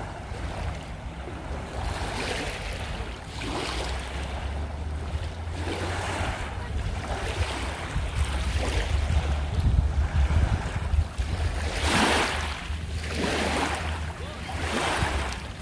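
Small waves wash gently onto a pebbly shore.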